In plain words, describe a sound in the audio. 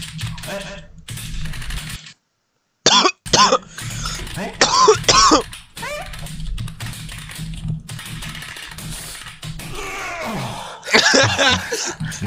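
Keyboard keys click rapidly.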